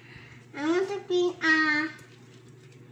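A young girl speaks in a high, sing-song voice close by.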